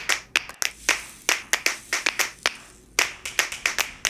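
Small plastic beads pour and rattle into a plastic container.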